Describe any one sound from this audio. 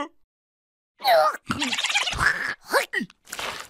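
A cartoon character shouts in a squeaky, high voice.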